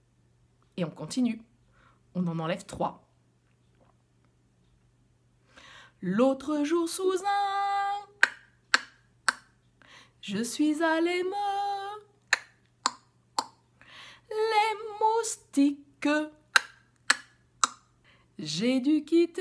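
A middle-aged woman speaks close up in a lively, sing-song voice, sometimes drawing out long notes.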